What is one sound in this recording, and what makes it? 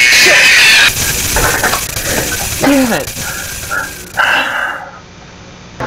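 A young man cries out in fright close to a microphone.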